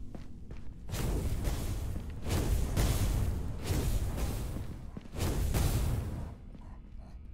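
Explosions boom loudly with crackling fire.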